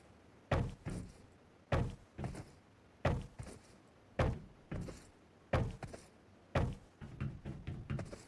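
Footsteps thud quickly on a hard surface.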